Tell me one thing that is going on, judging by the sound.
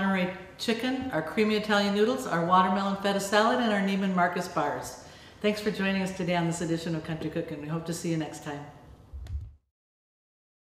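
A middle-aged woman speaks warmly and clearly into a nearby microphone.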